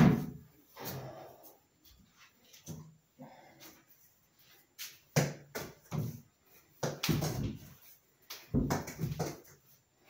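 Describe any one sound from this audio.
Footsteps thump and shuffle on a hard floor nearby.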